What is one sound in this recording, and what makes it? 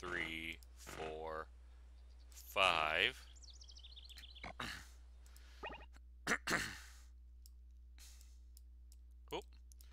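Short electronic game sounds chime and blip now and then.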